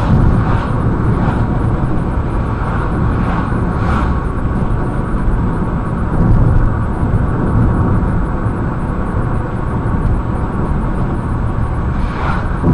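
Tyres roll on asphalt with a steady rumble.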